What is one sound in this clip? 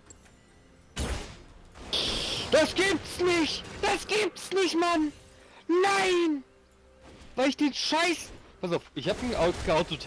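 Sword strikes and spell blasts clash in a video game battle.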